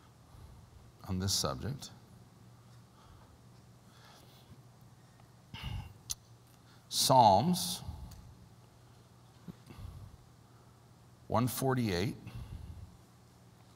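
A middle-aged man speaks calmly through a microphone in an echoing hall, with long pauses.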